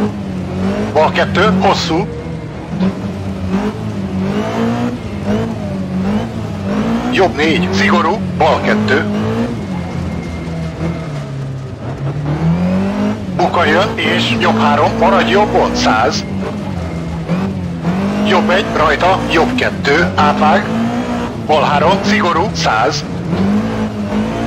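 A racing car engine drones steadily, its pitch rising and falling with the gears.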